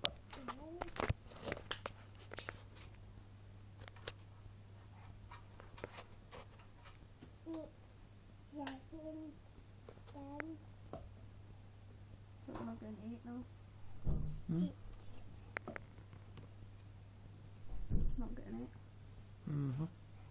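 A toddler babbles and vocalises close by.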